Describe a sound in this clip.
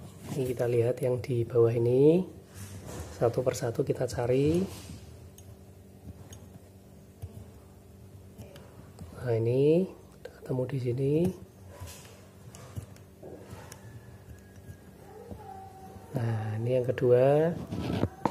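Small plastic dials click as a finger turns them on a combination lock.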